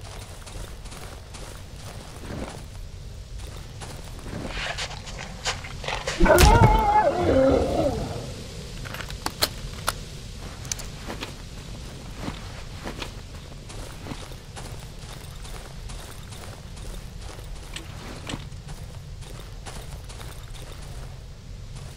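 Footsteps crunch softly on rough ground.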